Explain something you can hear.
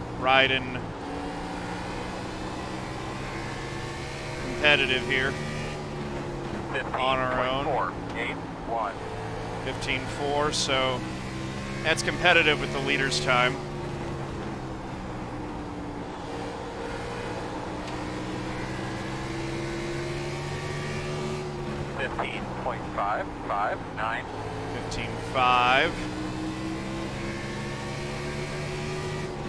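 A race car engine drones steadily, rising and falling slightly in pitch.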